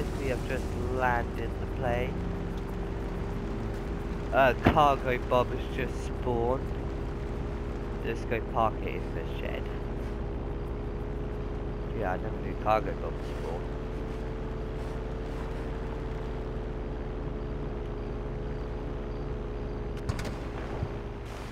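A small propeller plane's engine hums steadily.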